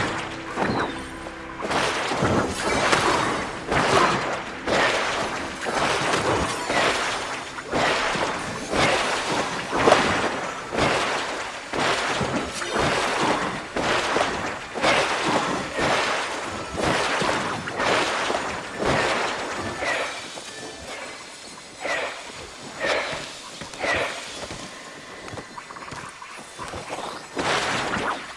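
Magical whooshing bursts sound again and again.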